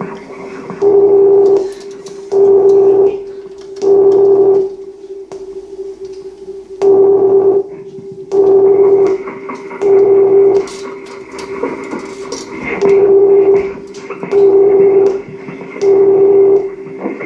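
A low electronic hum drones steadily between the bursts.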